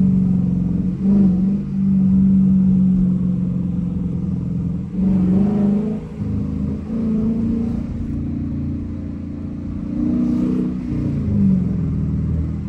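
A V8 engine's pitch drops at each gear change.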